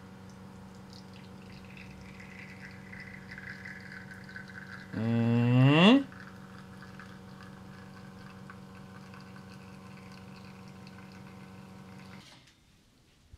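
An espresso machine pump hums steadily.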